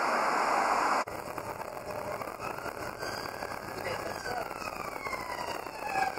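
An ambulance siren wails along a street.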